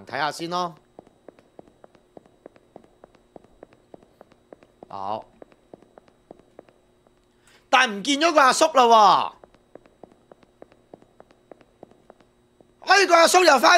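Footsteps tap steadily on a hard tiled floor.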